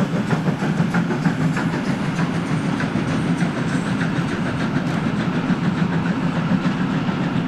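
A train's wheels click over rail joints.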